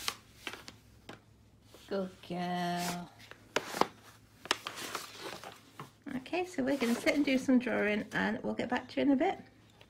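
A crayon scratches on paper.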